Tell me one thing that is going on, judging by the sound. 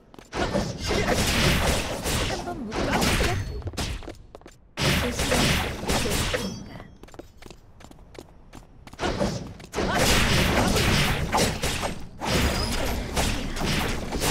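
Sword slashes whoosh and clash in rapid bursts.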